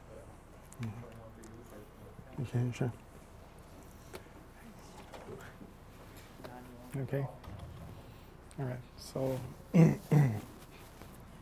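A man speaks through a microphone in a hall, in short bursts with pauses.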